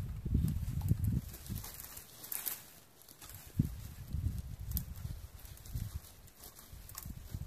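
Dry, bare branches rustle and crack as someone pulls them.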